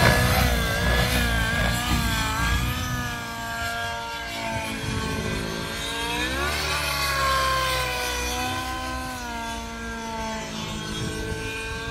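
A small model aircraft's motor whines overhead, its pitch wavering up and down.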